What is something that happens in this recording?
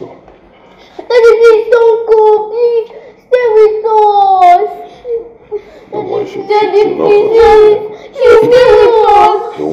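A young girl speaks up with animation, close by.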